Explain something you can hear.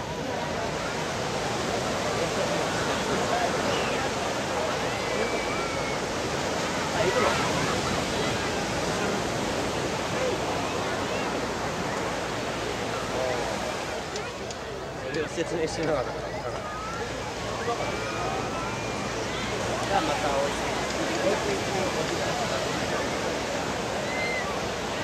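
A large outdoor crowd chatters and calls out all around.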